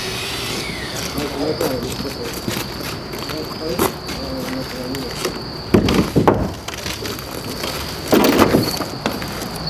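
Metal clanks and knocks.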